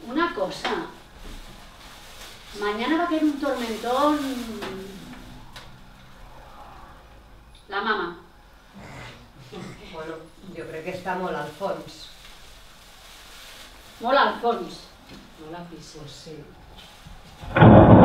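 Young women speak with feeling in turns.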